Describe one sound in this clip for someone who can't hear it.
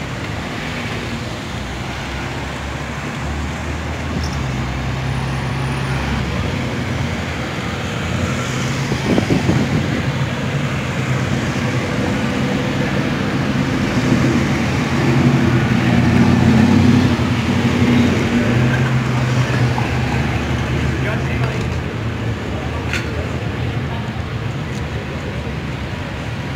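Cars drive past close by on a street, their engines humming and tyres rolling.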